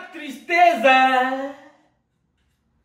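A man sings loudly with animation, close by.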